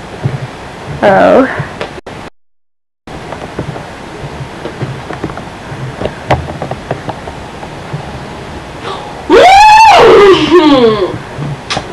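A cat meows loudly close by.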